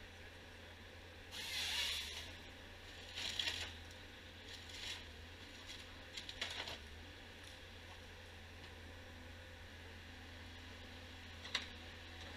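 A forestry harvester's engine hums steadily nearby.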